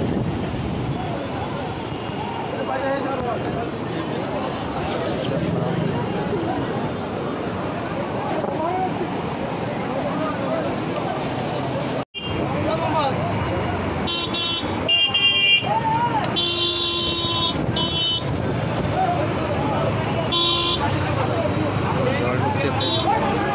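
Floodwater rushes and roars steadily.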